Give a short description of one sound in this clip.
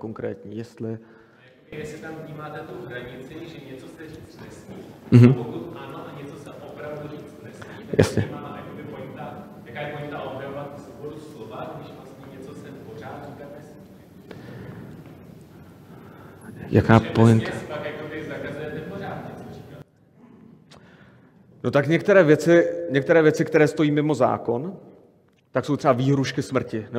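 A man speaks calmly through a microphone in a hall with a slight echo.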